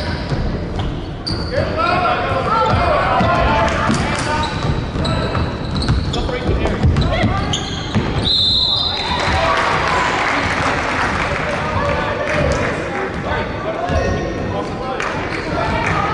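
Young players shout and call out to each other across an echoing gym.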